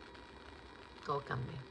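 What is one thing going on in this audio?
A woman speaks briefly and softly close by.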